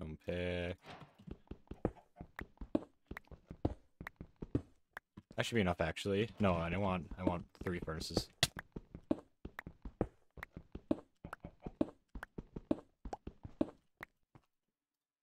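A pickaxe taps rapidly on stone.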